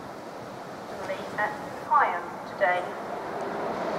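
A train horn sounds a few short blasts.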